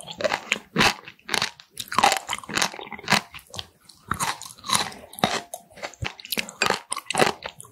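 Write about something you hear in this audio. Chopsticks tap against a glass dish of sauce.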